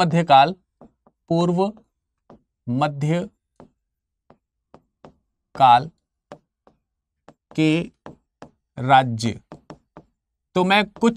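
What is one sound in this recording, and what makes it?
A man speaks calmly in short phrases, with pauses.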